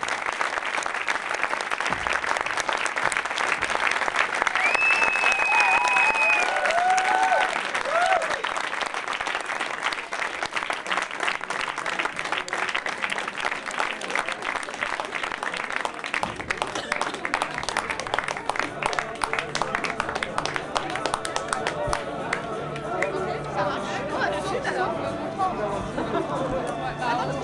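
A large crowd chatters loudly in an echoing room.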